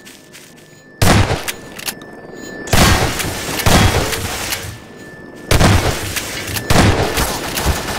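A shotgun fires loud blasts several times.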